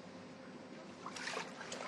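Water splashes as a person is lowered into it.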